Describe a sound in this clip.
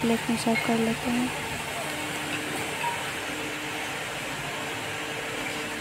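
A metal ladle clinks against a metal pan and plate.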